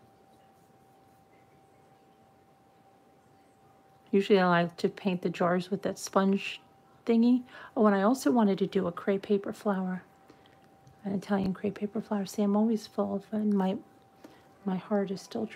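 A brush strokes softly across a jar.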